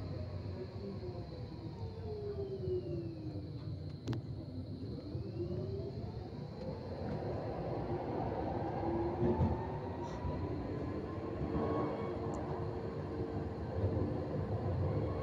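A tram's motor whines, falling and then rising in pitch.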